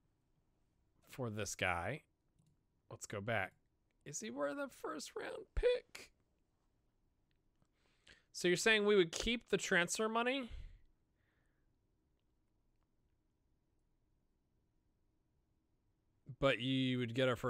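A young man talks calmly and close to a microphone, in short bursts with pauses.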